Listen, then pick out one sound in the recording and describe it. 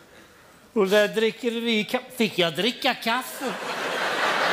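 A man laughs loudly and shrilly.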